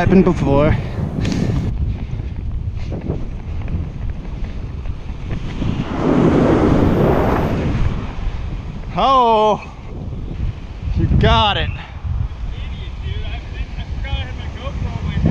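Waves break and wash up onto a sandy shore.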